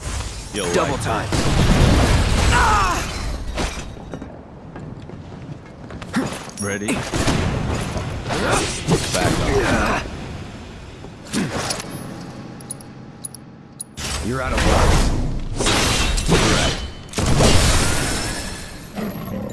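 Fiery explosions boom.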